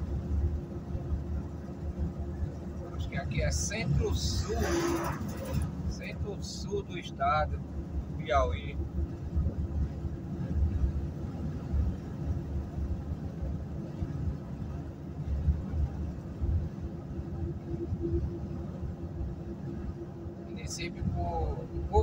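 A car engine hums and tyres rumble steadily on the road from inside the car.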